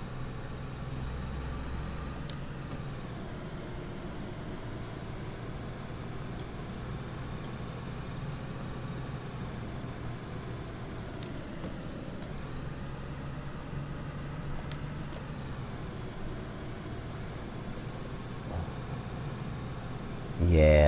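A car engine hums steadily while driving.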